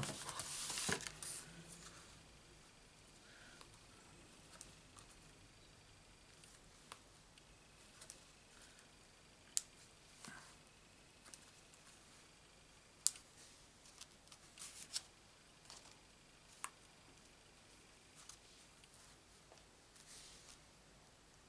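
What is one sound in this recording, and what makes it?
Hands rustle and tap paper cards on a table.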